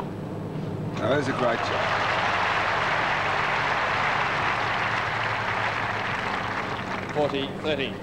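A crowd applauds loudly and then fades.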